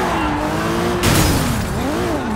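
A car crashes into another car with a loud thud.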